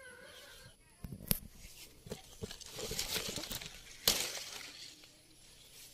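Leaves rustle as a branch is pulled.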